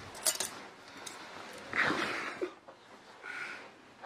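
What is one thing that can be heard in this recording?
Metal spoons clink together.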